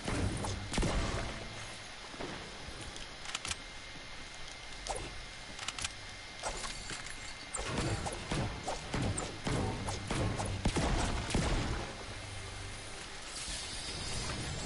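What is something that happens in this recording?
Sharp game sound effects clang and crack.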